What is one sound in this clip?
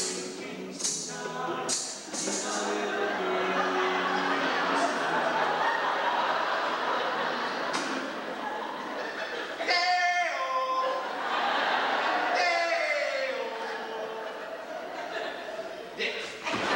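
Young performers sing and call out together in a large echoing hall.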